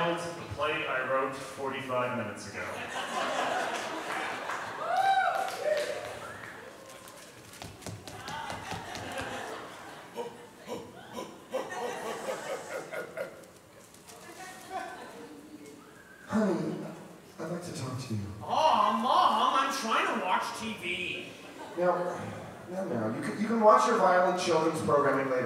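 A man speaks with animation into a microphone, heard through loudspeakers in a large hall.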